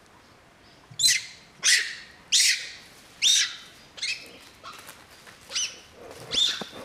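A monkey shrieks in short, loud, repeated bursts.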